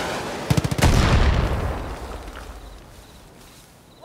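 A rocket explosion booms and rumbles away.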